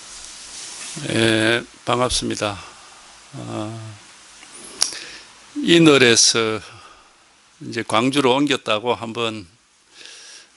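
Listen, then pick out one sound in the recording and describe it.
An elderly man speaks calmly into a microphone, close by.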